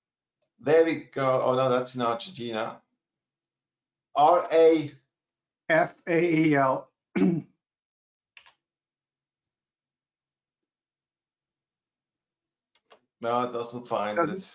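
A middle-aged man speaks calmly over an online call.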